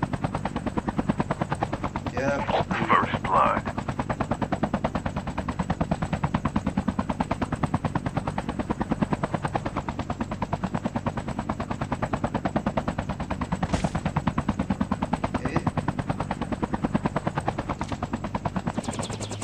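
A helicopter's rotor thumps steadily and fast.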